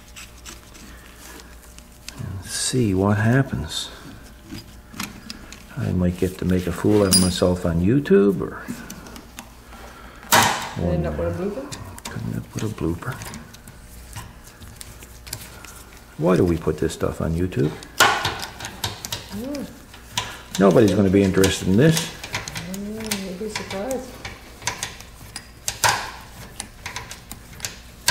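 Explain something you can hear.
Metal tool parts click and clink.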